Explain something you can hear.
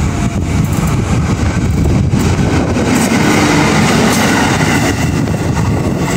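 A diesel locomotive rumbles past close by.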